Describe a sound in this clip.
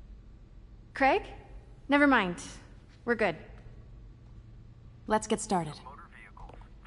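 A young woman speaks with animation into a phone, close by.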